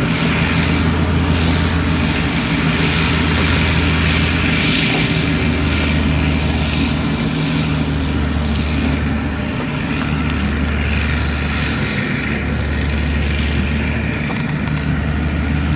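A forage harvester's diesel engine drones loudly and steadily.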